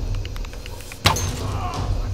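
A bow string snaps as an arrow is loosed.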